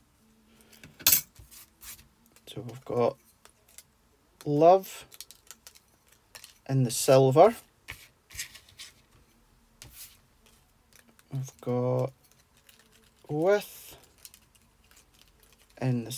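A thin metal cutting die clinks lightly as it is handled.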